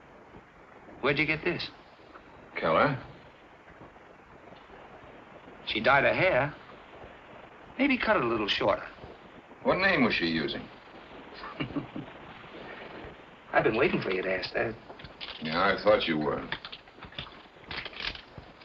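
A second middle-aged man speaks with animation through an old film soundtrack.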